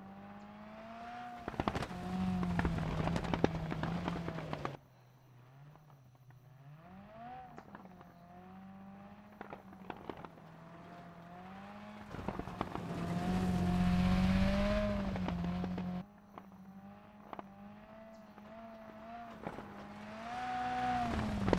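Gravel crackles and spatters under a rally car's tyres.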